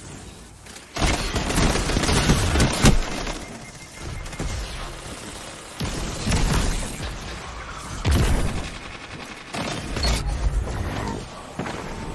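Explosions boom loudly in a video game.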